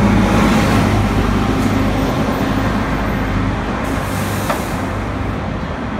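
Cars pass by on the street.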